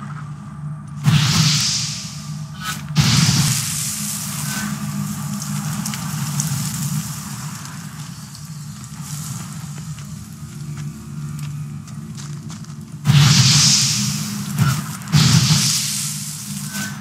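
A fiery blast bursts with a loud whoosh.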